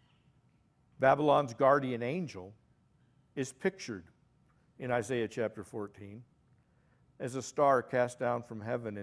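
A middle-aged man speaks calmly into a microphone, with pauses.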